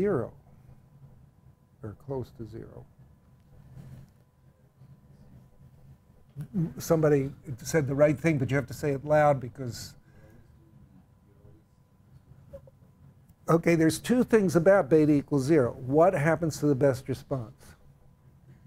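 An elderly man speaks calmly through a lapel microphone, in short bursts with pauses.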